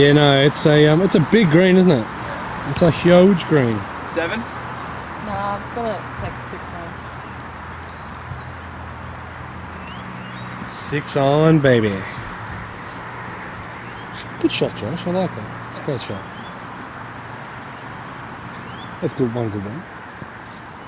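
A woman talks calmly nearby, outdoors.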